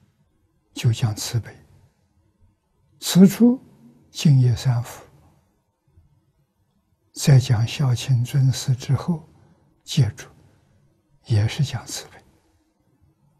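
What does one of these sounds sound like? An elderly man speaks calmly and slowly into a close microphone, with pauses.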